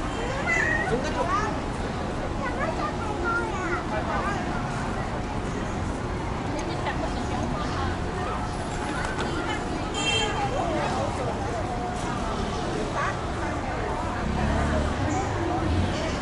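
A busy crowd of people chatters outdoors.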